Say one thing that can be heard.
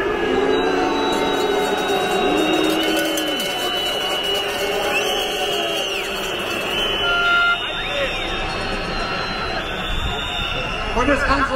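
Music plays loudly over loudspeakers outdoors.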